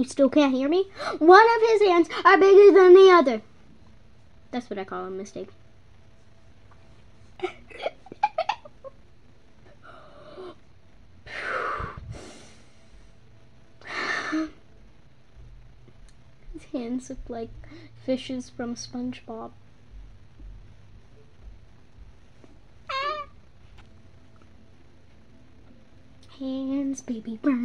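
A young girl talks close up, pausing often.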